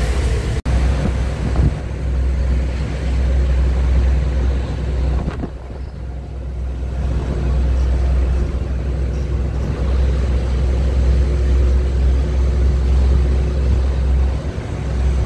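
Tyres roll along a road.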